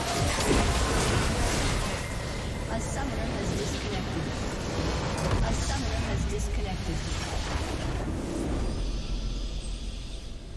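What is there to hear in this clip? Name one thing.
Loud game explosions and battle effects crash and rumble.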